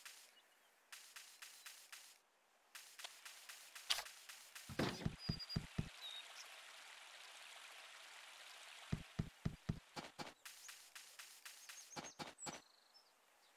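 Quick footsteps patter over grass and stone.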